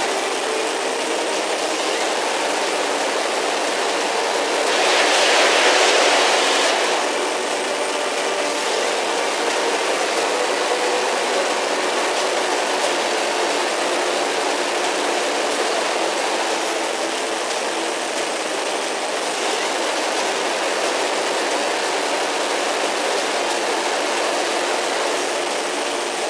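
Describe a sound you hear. A jet engine roars steadily throughout.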